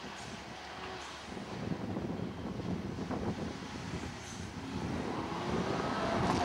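A rally car engine roars loudly as the car speeds by.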